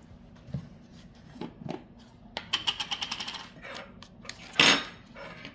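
A hand handles a plastic tub, making light knocks and rattles.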